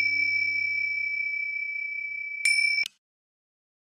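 A singing bowl rings with a steady metallic tone.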